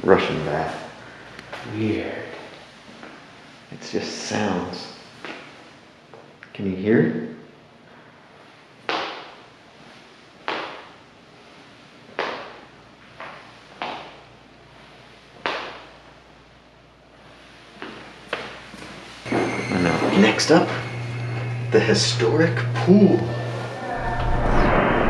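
A man talks through a mask, close by, in an echoing room.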